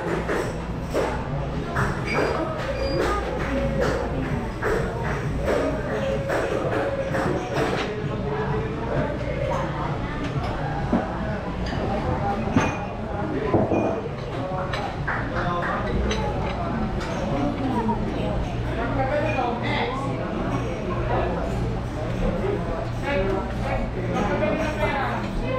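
Men and women chat in a busy room nearby.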